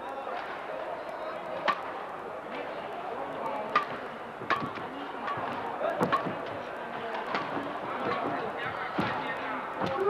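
A shuttlecock is struck back and forth with sharp racket pops.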